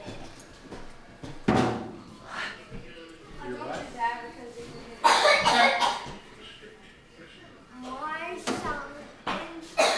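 A young girl hits drums and cymbals.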